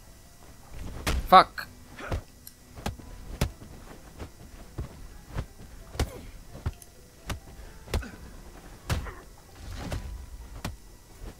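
Blades clash and strike repeatedly in a fight.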